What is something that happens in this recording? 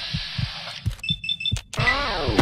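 Short electronic beeps chime in quick succession.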